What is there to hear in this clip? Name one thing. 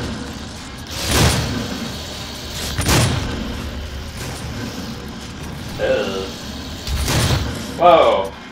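Heavy gunshots boom with a short ringing echo.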